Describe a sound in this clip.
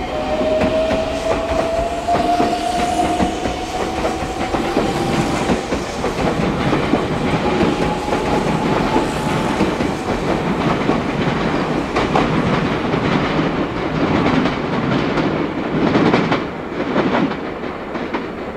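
A train rumbles past close by, wheels clattering over rail joints.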